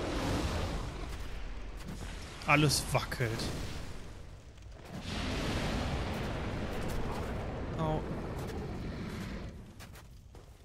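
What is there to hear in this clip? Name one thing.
Fire roars and whooshes in bursts.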